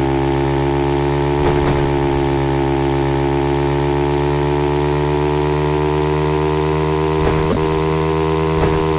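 A motorbike engine drones steadily at high revs.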